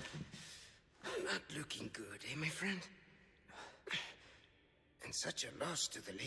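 A man speaks in a low, mocking voice close by.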